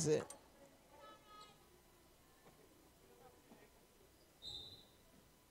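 Sneakers squeak sharply on a wooden court.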